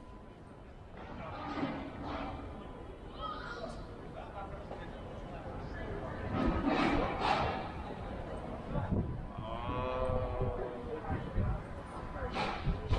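Passers-by chatter nearby.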